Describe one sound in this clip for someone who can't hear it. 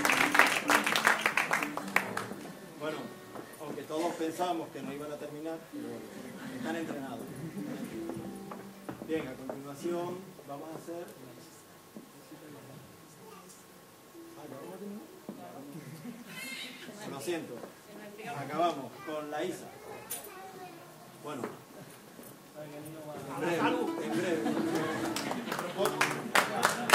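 A folk group sings together on stage.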